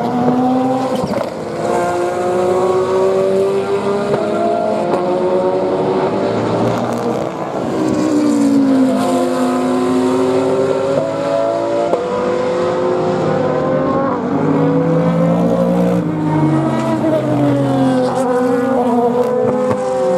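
GT race cars accelerate hard uphill, their engines rising and dropping in pitch through gear changes.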